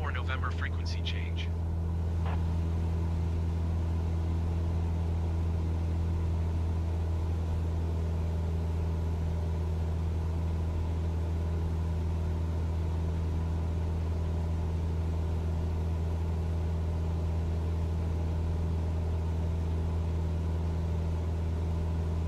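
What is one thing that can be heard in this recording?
A small propeller plane's engine drones steadily from inside the cockpit.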